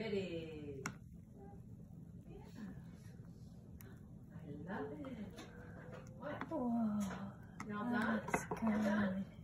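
A metal spoon clinks against a ceramic mug while stirring.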